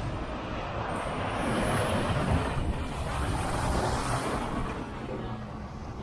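A heavy lorry rumbles past close by.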